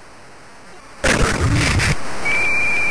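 Football players crash together in a tackle.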